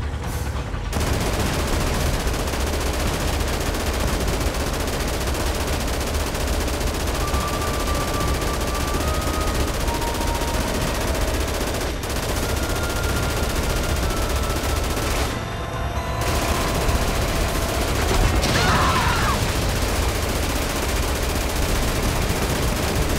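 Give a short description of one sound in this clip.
A heavy machine gun fires in rapid, continuous bursts.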